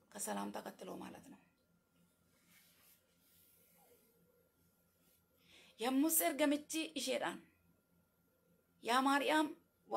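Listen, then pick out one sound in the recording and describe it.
A young woman speaks calmly and close to a microphone, in short phrases with pauses.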